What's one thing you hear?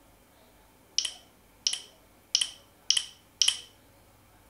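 Short bright game chimes ring out from a tablet in quick succession.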